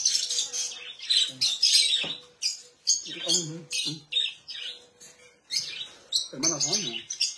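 Caged birds chirp and squawk loudly nearby.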